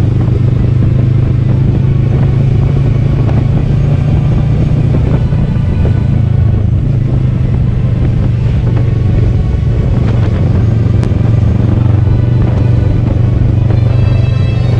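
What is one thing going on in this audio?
A motorcycle engine hums steadily up close as it rides along a road.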